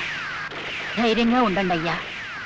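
A woman speaks with emotion nearby.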